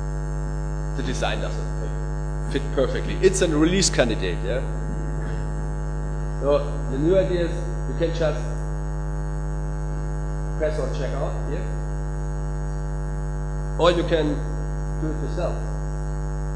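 A man speaks into a microphone in short bursts, heard over a loudspeaker.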